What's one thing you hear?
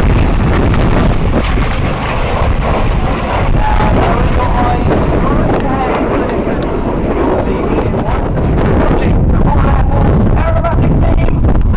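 People chatter nearby and in the distance.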